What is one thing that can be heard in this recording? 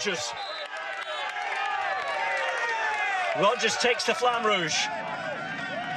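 A crowd cheers and shouts loudly close by.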